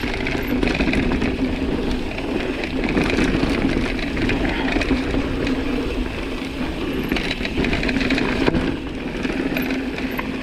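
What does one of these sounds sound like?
Bike tyres roll and crunch over a dirt trail.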